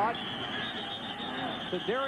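Football players collide in a tackle with a dull thud.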